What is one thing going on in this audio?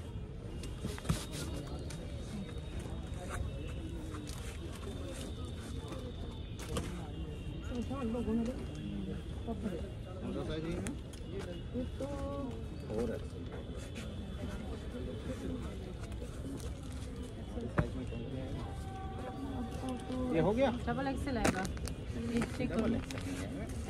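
A crowd of women chatters nearby.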